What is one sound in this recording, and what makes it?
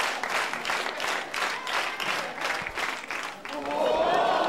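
A crowd claps in rhythm.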